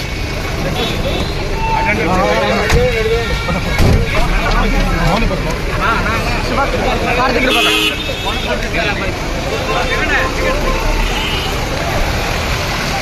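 Several men talk and shout over one another close by.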